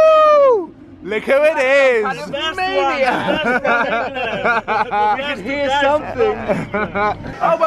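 A young man shouts and laughs excitedly nearby.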